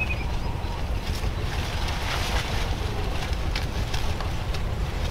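Corn leaves rustle as a woman brushes through the stalks.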